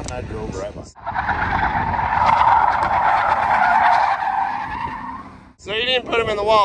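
Car tyres screech on asphalt.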